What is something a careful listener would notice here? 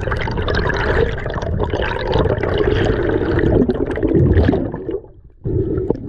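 Air bubbles gurgle and burble loudly underwater.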